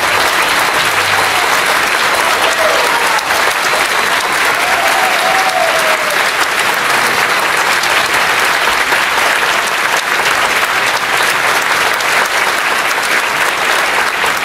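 An audience applauds loudly and steadily in a large hall.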